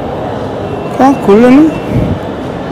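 An electronic ticket reader beeps.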